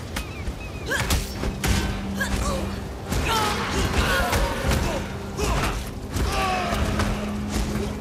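Weapon blows hit creatures with quick thuds.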